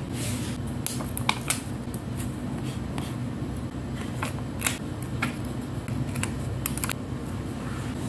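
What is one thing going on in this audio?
Metal tweezers tap and click against a sticker on paper.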